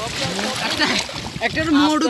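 Hands splash about in shallow water.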